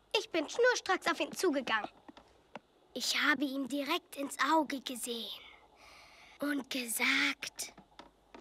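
A young girl shouts excitedly, close by.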